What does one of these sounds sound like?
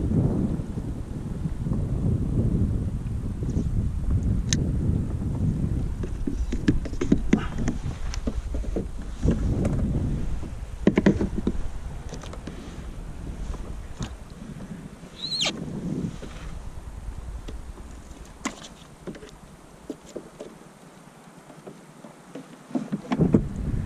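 Water laps against a kayak hull.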